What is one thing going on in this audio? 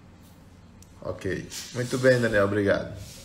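A middle-aged man speaks calmly, close to the microphone.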